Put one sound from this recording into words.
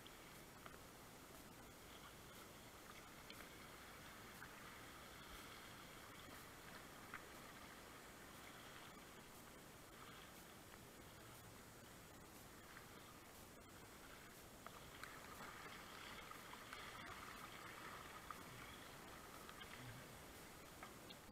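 A paddle splashes into the water.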